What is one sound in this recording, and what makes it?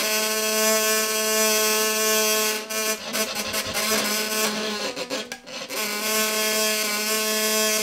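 A hurdy-gurdy drones with a steady buzzing tone.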